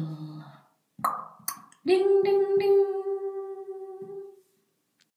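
A finger taps a small object, which rings with a clear tone that slowly fades.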